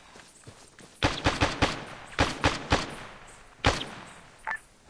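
A gun fires several sharp shots.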